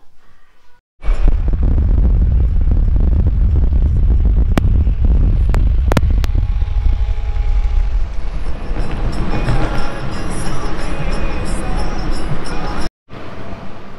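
Wind and traffic roar loudly past a moving car.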